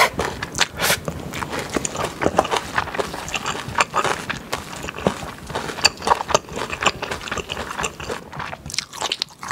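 A spoon stirs and scrapes rice in a steel bowl.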